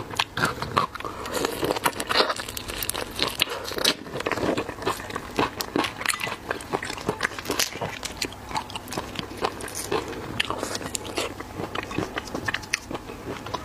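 A young woman chews and slurps food loudly close to a microphone.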